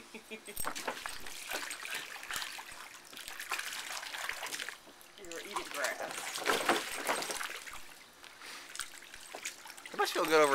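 A dog's paws scrape and crinkle against the soft plastic wall of a paddling pool.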